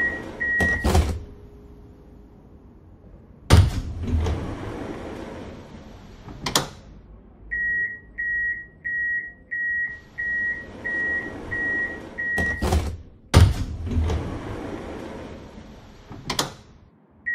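Tram doors slide and shut with a loud thud.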